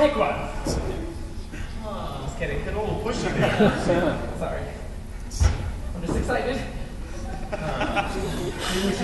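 A group of men sing together through microphones in a large echoing hall.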